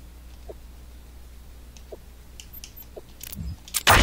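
Short electronic blips sound now and then.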